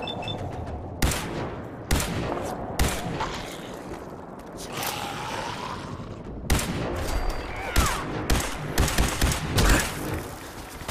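A heavy gun fires in loud, sharp bursts.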